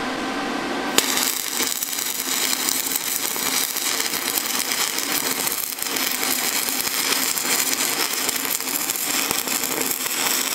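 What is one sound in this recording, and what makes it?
A welding arc crackles and sizzles steadily.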